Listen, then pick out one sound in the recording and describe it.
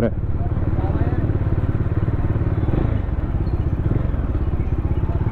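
A motorcycle engine rumbles steadily up close.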